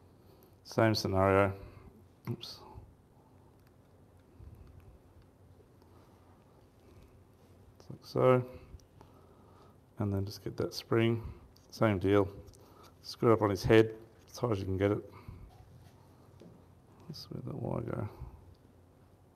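A middle-aged man talks calmly in short phrases, with pauses.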